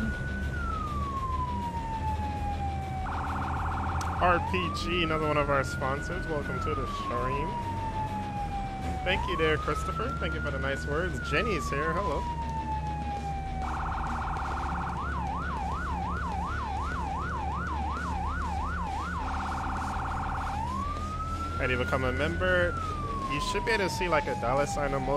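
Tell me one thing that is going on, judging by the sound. A siren wails and yelps, rising and falling.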